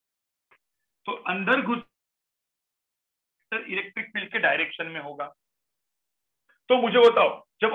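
A man explains calmly through a microphone, in short bursts with pauses.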